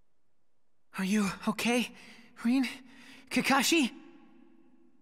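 A boy asks a question in a weak, worried voice.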